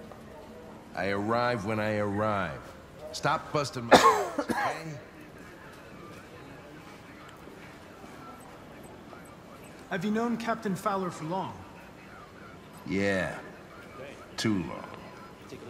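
An older man answers in a gruff, grumbling voice, close by.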